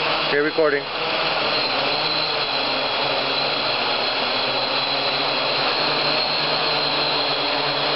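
A drone's propellers whir with a steady high buzz.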